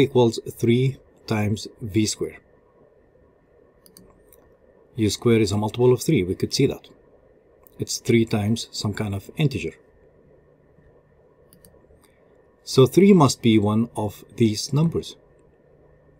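A man explains calmly, close to a microphone, in short bursts with pauses.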